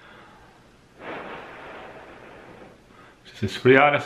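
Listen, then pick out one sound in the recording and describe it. A man slurps a hot drink.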